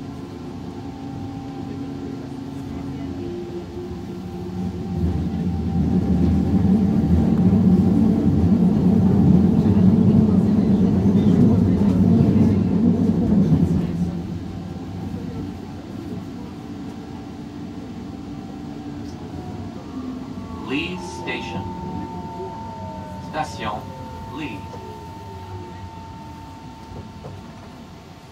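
A train rumbles along the tracks, heard from inside a carriage.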